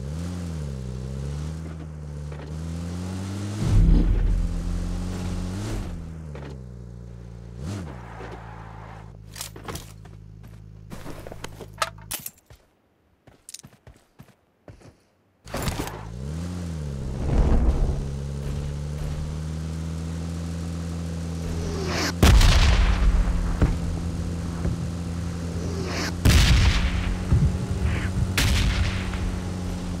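A vehicle engine hums and revs up and down.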